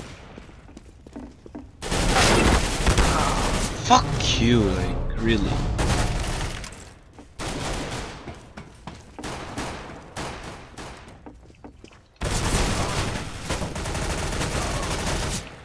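Gunshots ring out in a video game.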